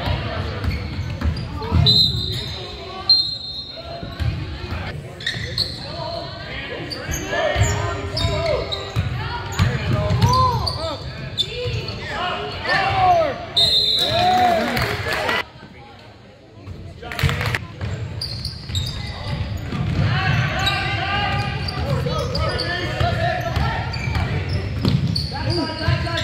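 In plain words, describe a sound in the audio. Spectators chatter nearby in an echoing gym.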